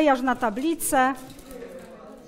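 A young woman speaks up close with animation.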